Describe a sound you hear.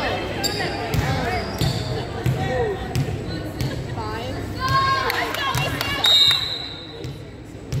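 A volleyball is struck with sharp smacks that echo through a large hall.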